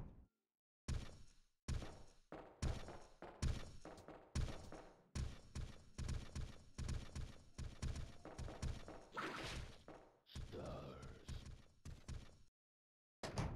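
Quick footsteps thud across a metal walkway.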